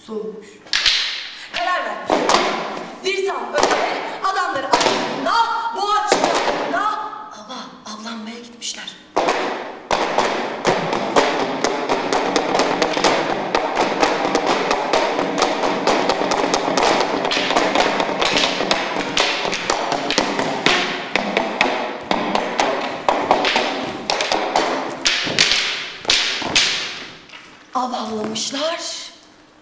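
A woman sings loudly.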